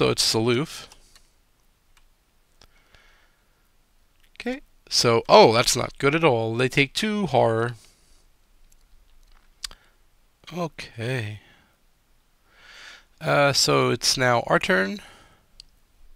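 A man talks calmly and casually into a close microphone, in bursts with pauses.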